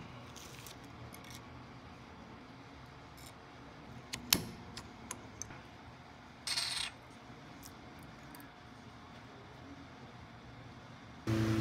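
Metal pliers click and scrape against a metal part.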